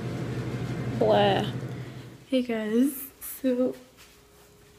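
A young woman speaks briefly and close by.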